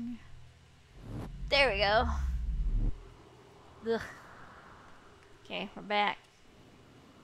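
A young woman exclaims and squeals into a microphone.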